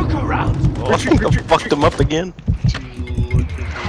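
Gunfire crackles in a video game.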